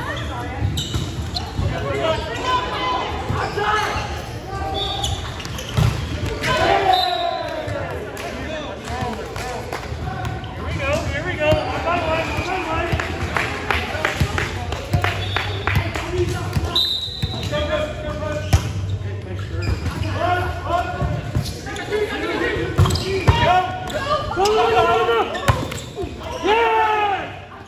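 A volleyball thumps against hands and arms.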